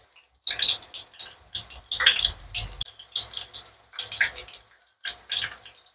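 A knife slices raw potato.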